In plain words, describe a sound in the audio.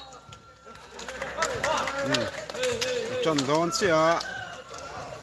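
Young men shout and cheer together in a huddle.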